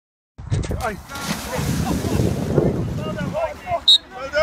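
A person slides through shallow water with a splashing rush.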